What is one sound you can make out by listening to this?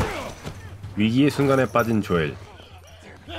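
A man calls out in strained voice.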